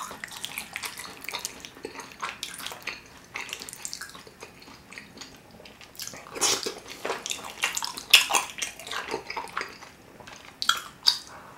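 A spoon scrapes and stirs thick sauce in a dish.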